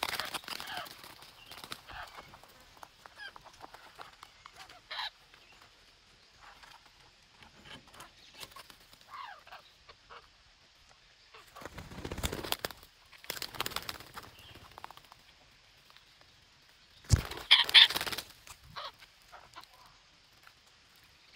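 Parrots squawk and chatter close by.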